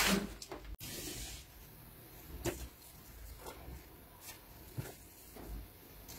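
A marker scratches lightly along paper.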